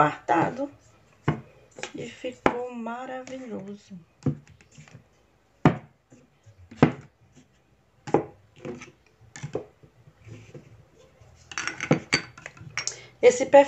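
Plastic bottles and jars are set down with light knocks.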